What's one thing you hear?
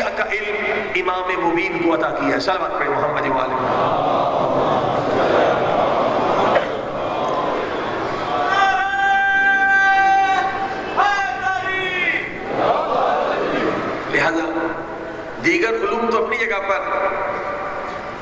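A middle-aged man speaks into a microphone with feeling, sometimes chanting in a drawn-out tune, in an echoing hall.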